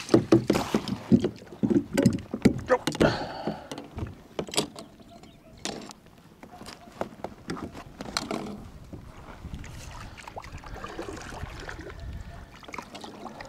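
Hard plastic knocks and rattles close by.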